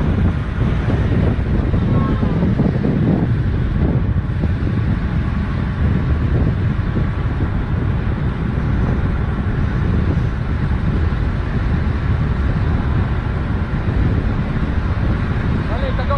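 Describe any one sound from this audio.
Wind rushes loudly past the microphone while moving at speed.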